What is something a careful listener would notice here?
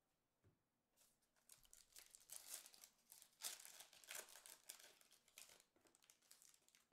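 Playing cards rustle and flick between hands.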